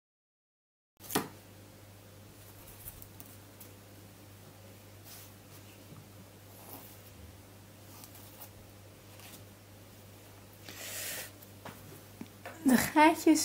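A knife scrapes and cuts into a firm root vegetable.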